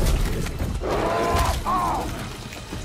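A bear roars loudly.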